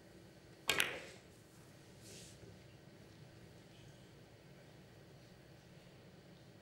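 Billiard balls knock against each other and the cushions.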